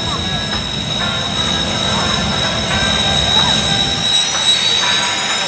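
Jet engines whine steadily at idle nearby.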